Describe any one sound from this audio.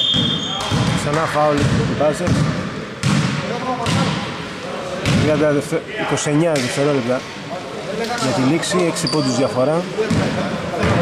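Young men shout to each other across a large echoing gym.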